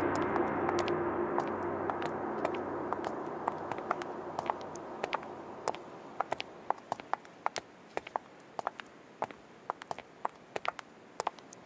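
Footsteps click on a hard floor.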